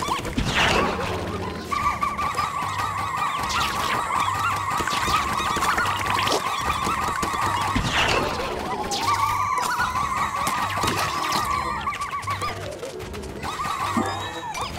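Game music plays with a steady beat.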